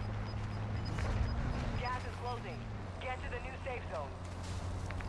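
A young man speaks into a close microphone.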